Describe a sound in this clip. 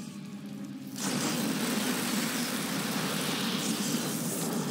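Rushing water churns and splashes loudly.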